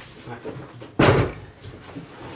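A wooden table thuds down onto a wooden floor.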